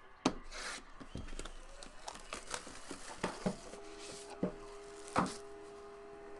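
Plastic wrap crinkles and rustles.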